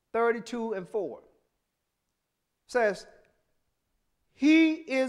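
A man preaches into a microphone in slow, emphatic phrases with long pauses.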